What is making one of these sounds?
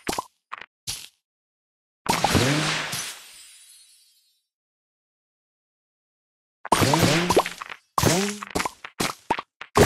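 Bright chimes and pops sound as candies match and burst.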